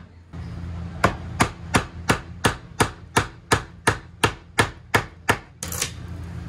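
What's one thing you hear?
A hammer strikes wood overhead.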